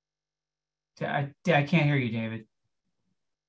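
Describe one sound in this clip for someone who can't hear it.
A man speaks briefly and calmly over an online call.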